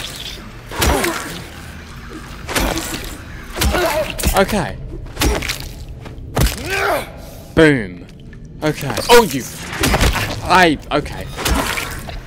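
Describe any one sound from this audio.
A metal pipe strikes a creature with heavy thuds.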